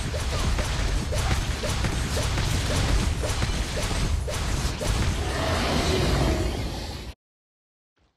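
Fighting sound effects clash and crackle in quick bursts.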